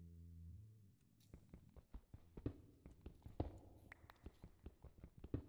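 A pickaxe chips at stone blocks in a video game.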